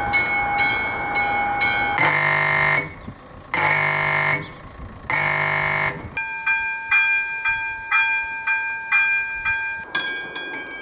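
A level crossing bell rings quickly and repeatedly.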